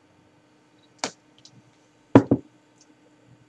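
A glass bottle clinks as it is lifted off a wooden table.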